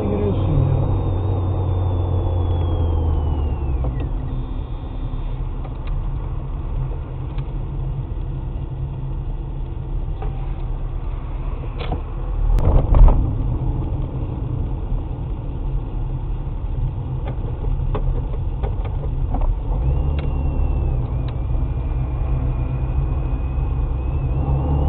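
Tyres rumble over a paved road.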